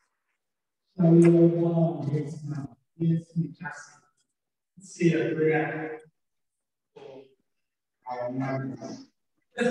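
A man speaks calmly into a microphone over a loudspeaker.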